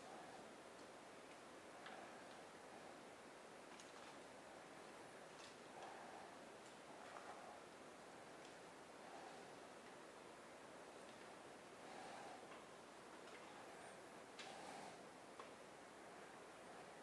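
A man speaks quietly and haltingly, reading out, heard from a distance.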